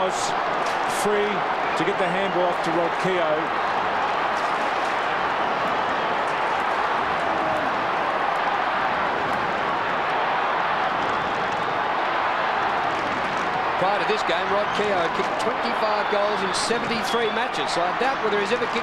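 A large crowd roars and cheers in a big outdoor stadium.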